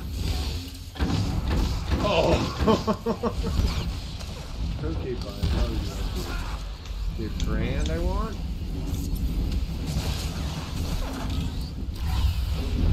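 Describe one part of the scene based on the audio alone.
Weapons blast and clash in a loud fight.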